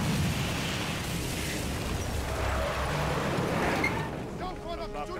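A blast roars and fire rumbles loudly.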